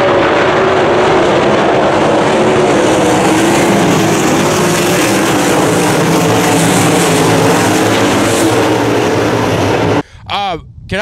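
Race cars roar loudly around a dirt track.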